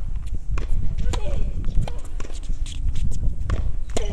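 A tennis racket strikes a ball hard.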